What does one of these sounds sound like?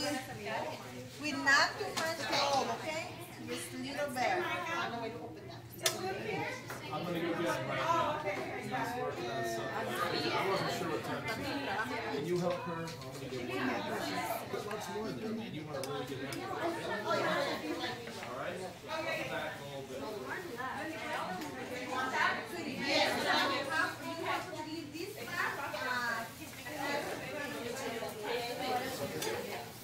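Children chatter.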